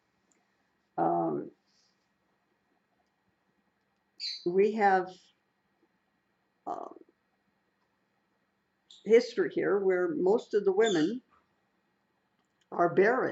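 An elderly woman speaks calmly and close by, in short phrases with pauses.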